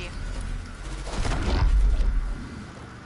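A bright magical burst whooshes loudly.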